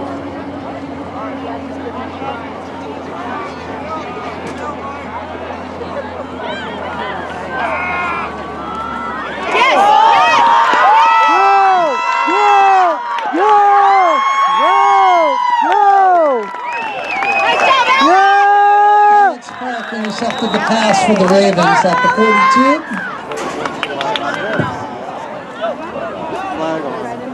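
A crowd chatters and murmurs in the distance outdoors.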